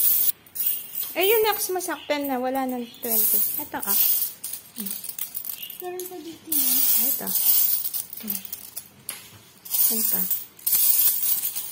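Coins clink and jingle in a pile.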